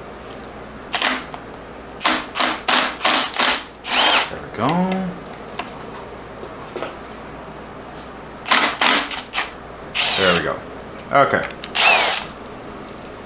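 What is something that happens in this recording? A cordless power tool whirs in short bursts.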